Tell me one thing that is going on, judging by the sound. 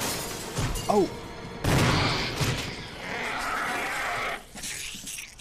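A creature snarls and screeches.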